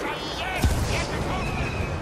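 A jet pack roars briefly.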